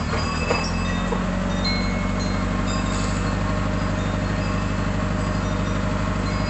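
A small power saw buzzes steadily as its blade cuts through thin wood.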